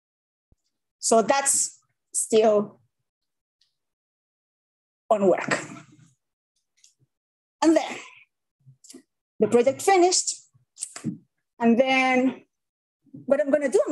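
A young woman speaks calmly through an online call, in short phrases with pauses.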